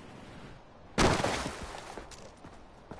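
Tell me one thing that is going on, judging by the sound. A body lands on the ground with a heavy thud.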